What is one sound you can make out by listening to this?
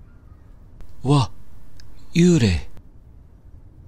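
A young man cries out loudly twice.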